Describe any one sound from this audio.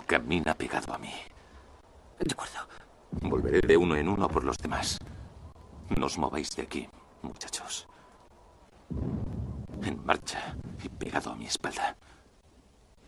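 A young man speaks urgently in a low voice, close by.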